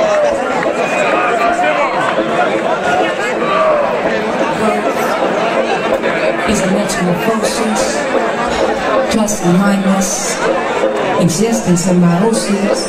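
A crowd of young people talks and cheers close by.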